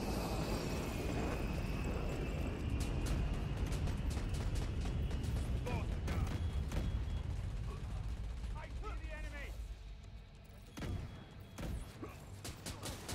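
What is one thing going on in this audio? Heavy footsteps thud quickly on hard ground.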